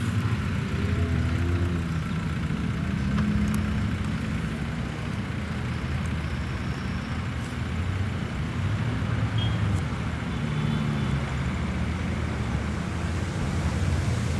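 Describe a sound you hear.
An off-road SUV engine labours as the vehicle climbs a slope under load.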